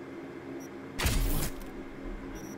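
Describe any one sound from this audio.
A brief electronic whoosh sweeps through a menu change.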